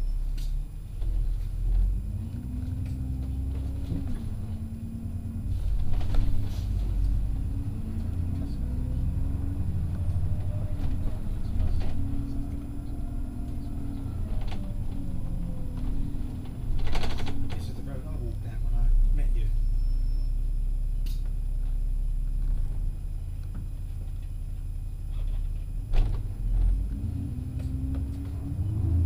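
A bus engine rumbles steadily, its whine rising and falling with speed.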